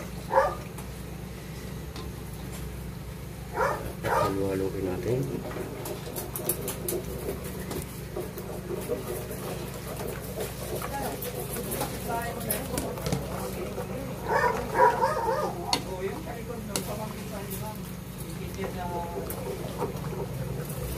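Sauce bubbles and simmers in a pan.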